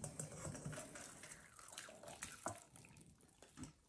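Liquid pours and splashes through a metal strainer.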